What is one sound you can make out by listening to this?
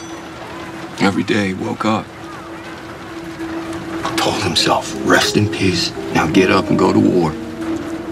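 A man speaks in a low, strained voice close by.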